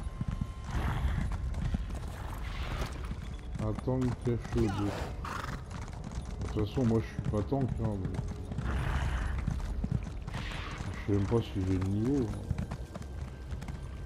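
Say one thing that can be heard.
A horse's hooves gallop over the ground.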